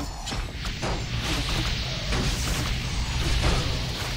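Magic bolts crackle and zap in quick bursts.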